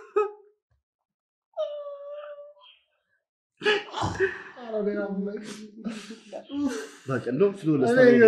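Young men laugh loudly close by.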